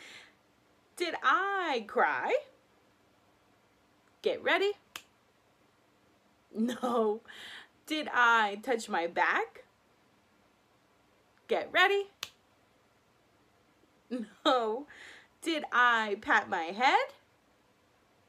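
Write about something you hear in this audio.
A young woman talks cheerfully and animatedly, close by, with pauses between phrases.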